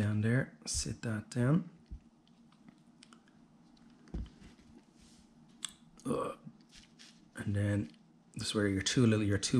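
Small plastic parts click and tap as they are handled.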